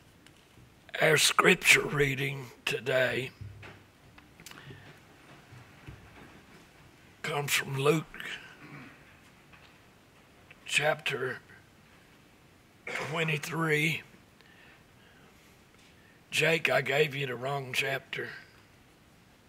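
An elderly man speaks calmly into a microphone in a room with some echo, pausing between phrases.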